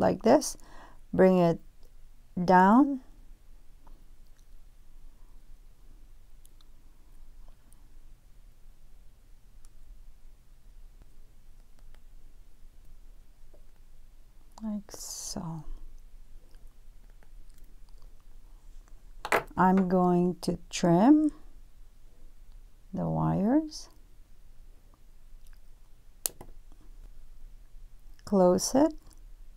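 Small metal pliers click softly on a wire.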